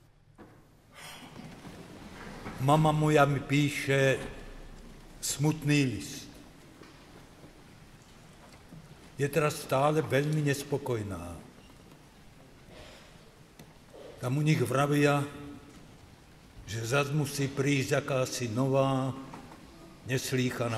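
An elderly man recites slowly and solemnly into a microphone, echoing in a large hall.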